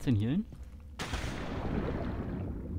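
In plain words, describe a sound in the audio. Water splashes as a body plunges into a pool.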